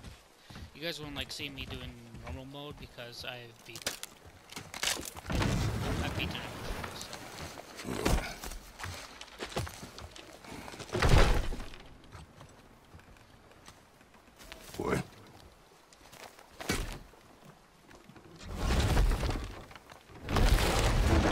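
Water laps and splashes.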